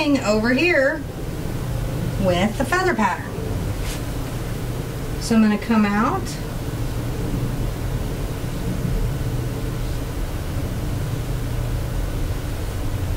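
A paintbrush brushes softly on canvas.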